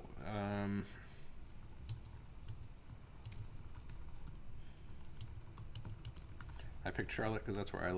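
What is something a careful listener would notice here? Keys click quickly on a computer keyboard.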